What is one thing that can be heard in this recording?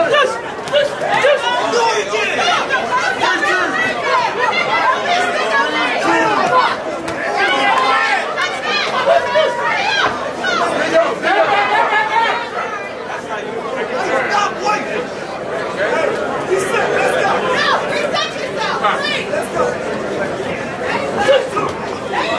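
Boxing gloves thud against each other and against bodies.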